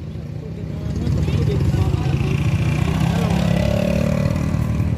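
A motorbike drives past close by.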